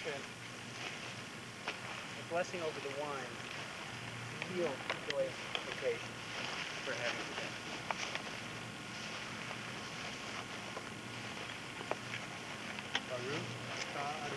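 Men and women murmur and chat quietly outdoors.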